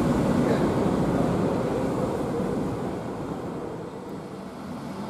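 A bus engine rumbles as a bus pulls away.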